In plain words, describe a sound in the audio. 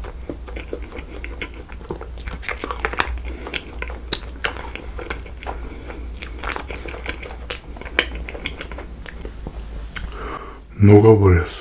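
A young man chews soft food close to a microphone.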